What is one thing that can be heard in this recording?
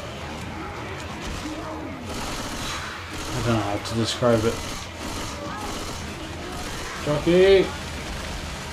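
Zombies snarl and groan close by.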